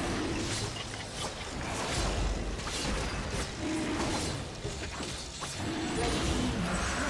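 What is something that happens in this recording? Game spell effects crackle and burst in quick succession.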